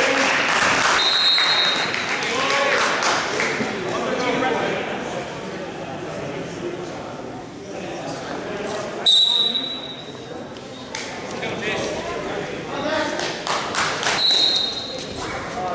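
A referee blows a whistle in short shrill blasts.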